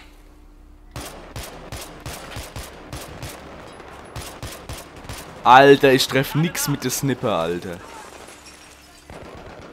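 Rifle shots crack repeatedly.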